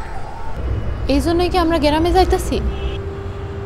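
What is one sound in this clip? A woman speaks earnestly, close by.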